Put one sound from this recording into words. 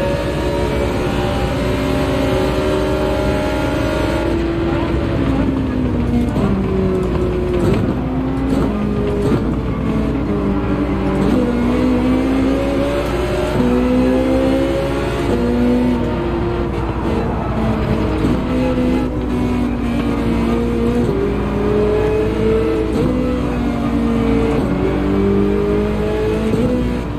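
A racing car engine roars loudly, its pitch climbing and dropping sharply with each gear change.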